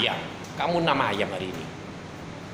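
A young man speaks briefly and casually, close by.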